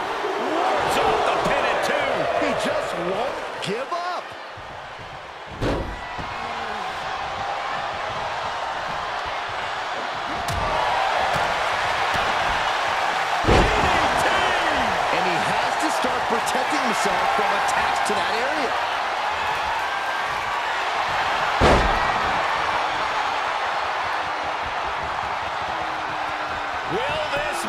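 A crowd cheers and roars loudly.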